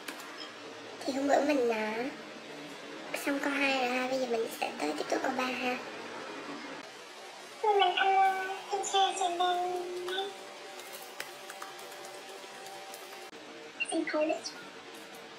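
A young woman speaks calmly into an online call.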